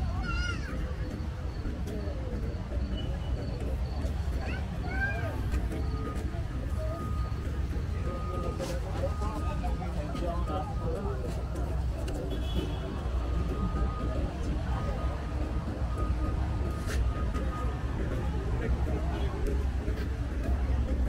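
A crowd chatters at a distance outdoors.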